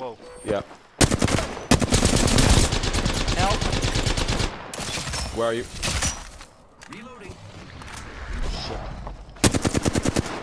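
A rapid-fire gun shoots in loud, quick bursts.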